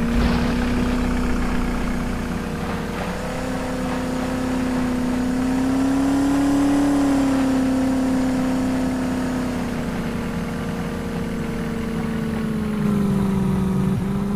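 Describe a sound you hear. A car engine hums steadily, its pitch rising and falling slightly.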